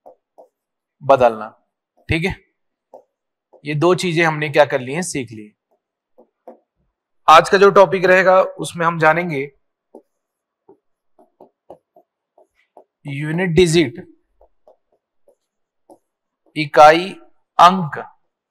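A man speaks calmly into a microphone in short bursts, explaining.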